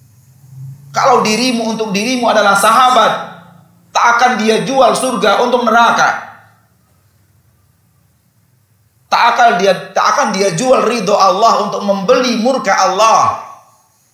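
A man speaks with animation through a microphone, in bursts with pauses.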